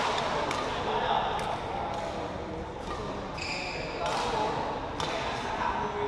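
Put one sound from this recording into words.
Badminton rackets strike a shuttlecock with sharp pops in a large echoing hall.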